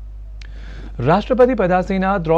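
A man speaks clearly and steadily into a microphone.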